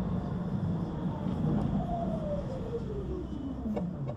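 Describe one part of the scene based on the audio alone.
A tram's motor whines, falling in pitch as it slows.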